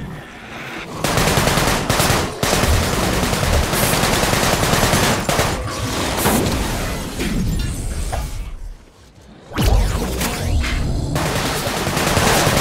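Blasts and impacts crash during a fight with game enemies.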